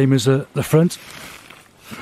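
Fabric rustles close by.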